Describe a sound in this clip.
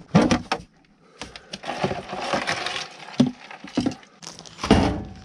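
Plastic parts rattle and clatter as a case is opened by hand.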